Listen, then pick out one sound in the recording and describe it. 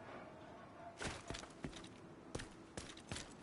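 Footsteps run quickly over hard ground.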